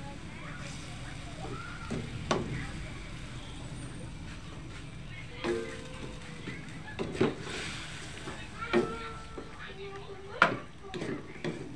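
A wooden spatula stirs and scrapes against a steel wok.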